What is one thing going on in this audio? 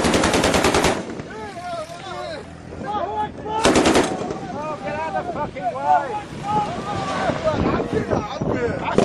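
Men shout excitedly nearby.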